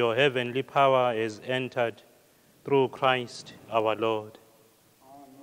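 A man chants in a clear voice through a microphone in an echoing hall.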